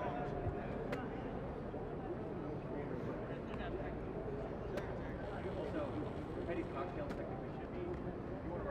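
A crowd of men and women talk and call out across an open field outdoors.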